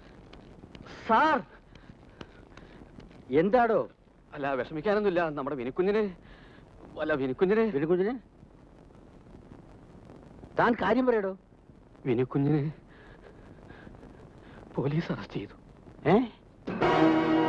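An elderly man speaks tensely, close by.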